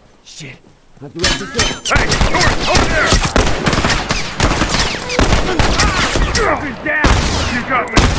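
Gunshots crack out in quick bursts.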